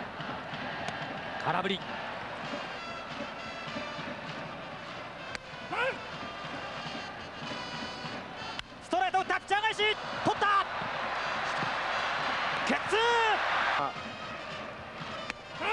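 A large crowd cheers and chants steadily in a stadium.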